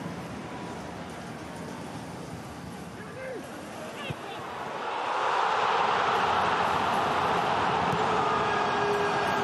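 A stadium crowd murmurs, then swells into loud cheering.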